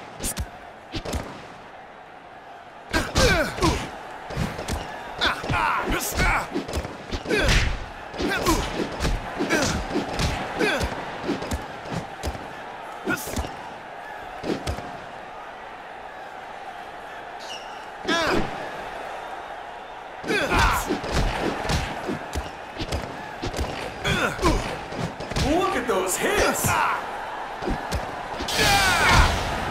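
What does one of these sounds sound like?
Boxing gloves thud in quick punches.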